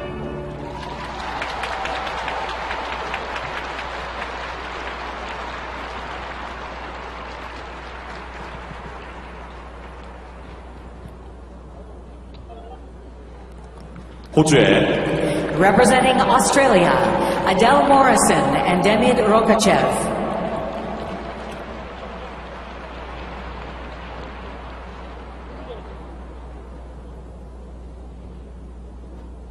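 A large crowd applauds and cheers in an echoing arena.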